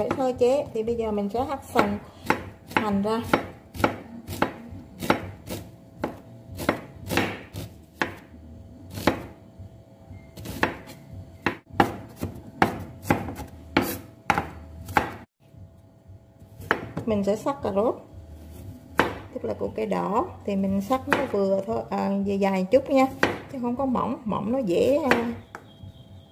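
A knife chops in sharp, quick knocks on a wooden board.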